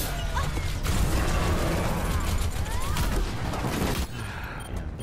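Rapid gunshots and blasts crackle loudly.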